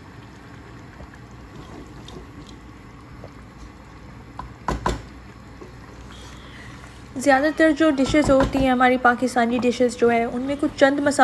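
A wooden spoon stirs a thick stew and knocks against a metal pot.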